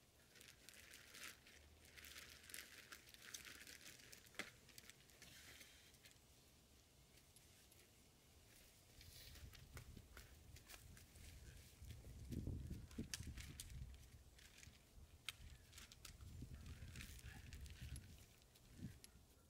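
A rake scrapes and rustles through dry mulch and soil.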